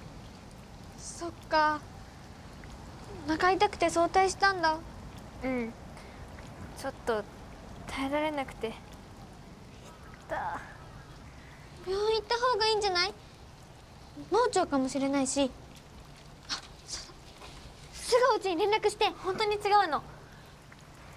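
Young girls talk softly with each other nearby.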